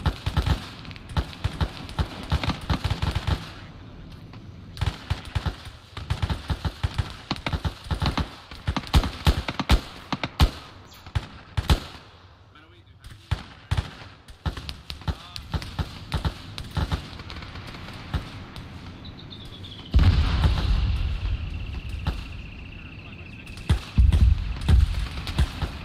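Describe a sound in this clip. Gunshots crack in rapid bursts nearby.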